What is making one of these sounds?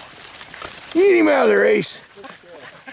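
A dog whines and yelps close by.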